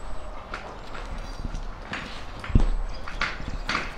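A whisk clinks in a bowl.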